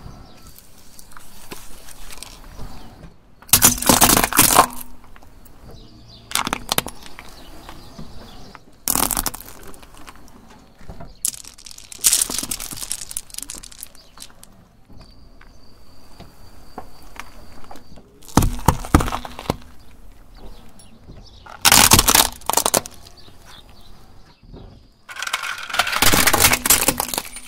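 Tyres crunch slowly over gravel.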